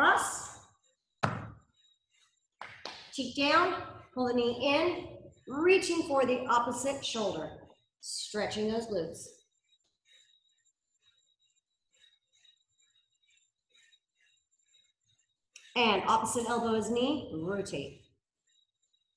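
A young woman speaks calmly and clearly into a nearby microphone, pausing now and then.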